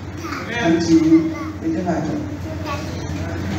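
A girl speaks into a microphone, heard through loudspeakers.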